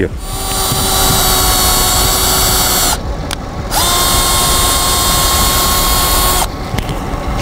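A cordless drill whirs in short high-pitched bursts.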